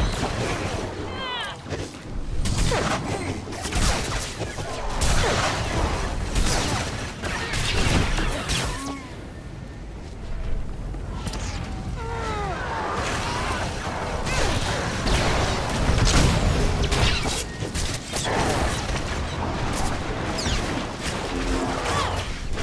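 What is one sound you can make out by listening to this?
Blasts and explosions boom again and again.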